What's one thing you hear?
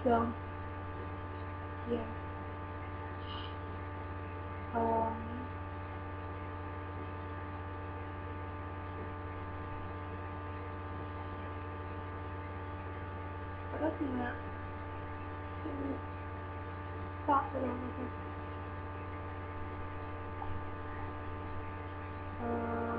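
A young woman speaks in short, quiet bursts close to a microphone.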